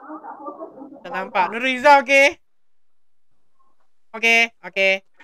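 A young girl speaks in a high voice through a video call.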